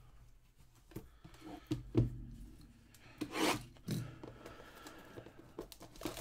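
Cardboard boxes slide and bump on a table.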